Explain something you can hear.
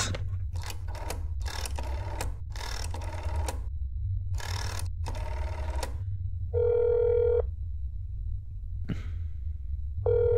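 A rotary telephone dial clicks as it turns.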